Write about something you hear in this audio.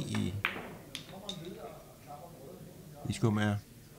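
Billiard balls clack together and knock over small pins.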